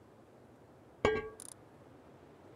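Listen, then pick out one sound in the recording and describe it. A menu closes with a sharp click.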